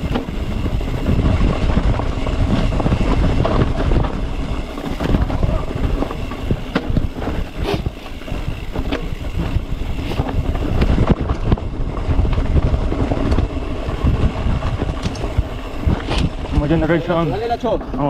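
A bicycle frame rattles and clatters over bumps.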